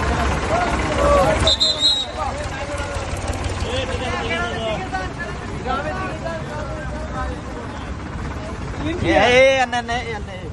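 A crowd of people chatter and shout outdoors at night.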